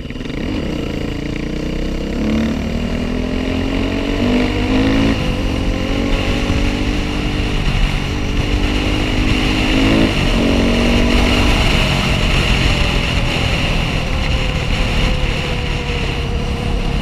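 A motorcycle engine revs and roars up close, shifting up and down through the gears.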